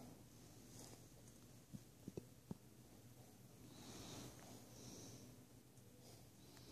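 A person breathes softly very close by.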